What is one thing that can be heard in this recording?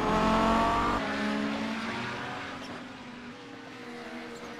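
Racing car engines hum from a distance.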